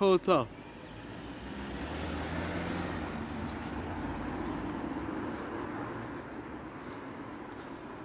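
A car drives past.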